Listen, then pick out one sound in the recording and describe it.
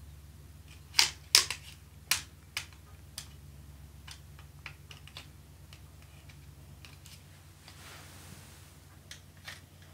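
A thin metal saw blade clicks and taps against a wooden frame.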